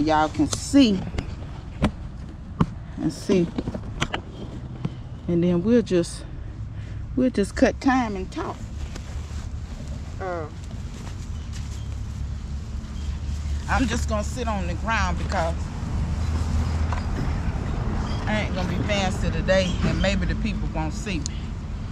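A woman talks calmly and close by.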